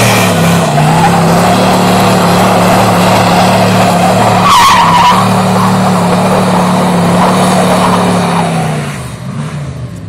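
Tyres spin and scrabble on a gravel road.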